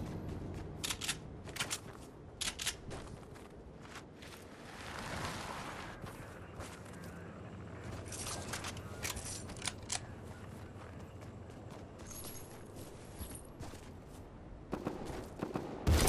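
Footsteps patter quickly.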